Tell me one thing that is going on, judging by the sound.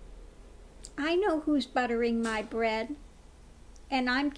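A middle-aged woman speaks calmly and expressively, close by.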